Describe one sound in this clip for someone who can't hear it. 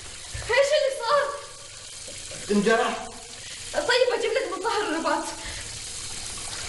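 A woman answers with animation.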